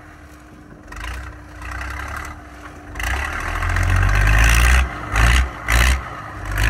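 A heavy truck engine rumbles and revs as the truck lurches over rough ground.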